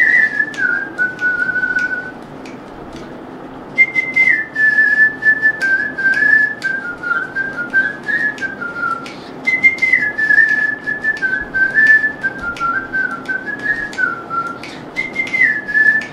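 A man whistles a slow melody close by, with a short pause.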